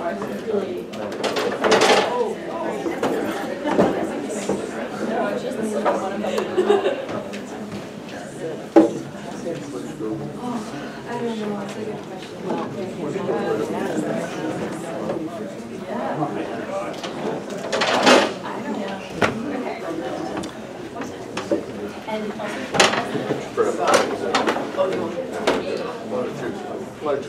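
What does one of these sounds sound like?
A woman speaks to an audience.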